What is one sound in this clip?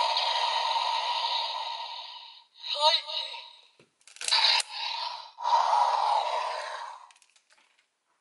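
A toy plays tinny electronic sound effects through a small speaker.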